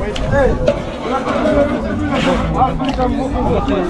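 A ladle scrapes and stirs in a large metal pot.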